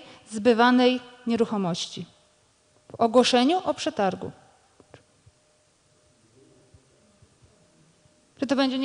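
A man speaks calmly into a microphone, heard through a loudspeaker in a large room.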